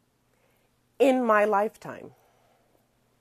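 A woman speaks expressively in a sung, drawn-out way.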